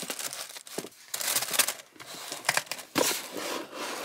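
A cardboard box flap scrapes and thuds as it is closed.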